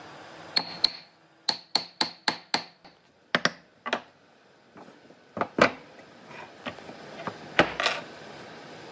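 Wooden pieces knock and clatter against each other and a wooden table.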